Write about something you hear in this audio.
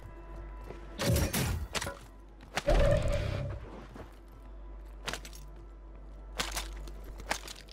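Gear is picked up with short rattling clatters.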